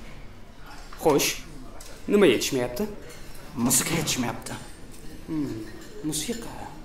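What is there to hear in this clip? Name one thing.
A young man speaks in short, lively phrases close by.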